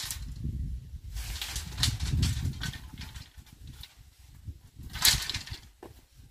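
Bamboo poles clatter and knock together as they are gathered.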